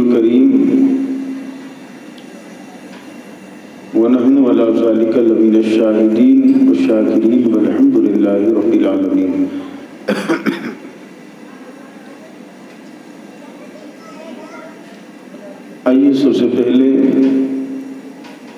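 A man chants loudly into a microphone with reverb, in long drawn-out phrases.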